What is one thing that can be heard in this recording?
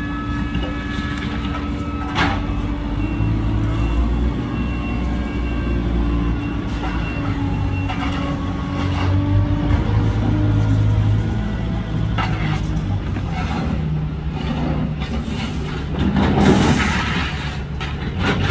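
A broom scrapes on the street.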